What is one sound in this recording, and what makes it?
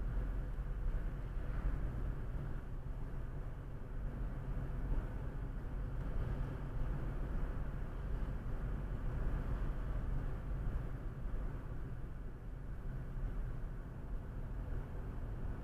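A car engine hums steadily with tyre rumble on the road.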